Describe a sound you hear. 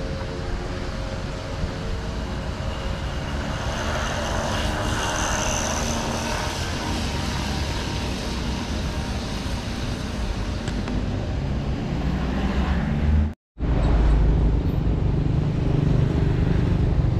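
Cars drive past on a nearby road.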